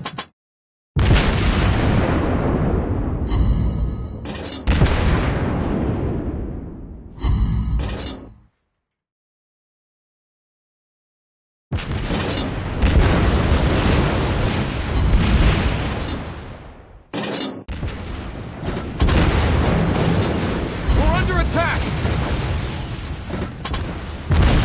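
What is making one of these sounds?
Heavy naval guns fire in booming blasts that rumble and fade.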